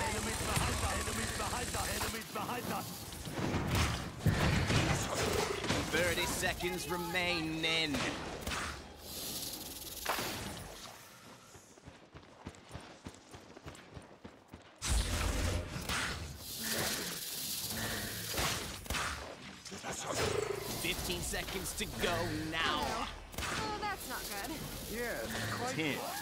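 Gunshots and energy blasts fire rapidly in a video game.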